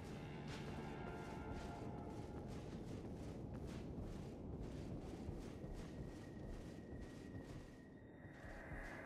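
Footsteps tap rapidly on a stone floor.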